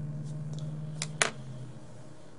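Paper rustles briefly.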